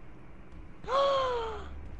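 A short game chime sounds as a menu opens.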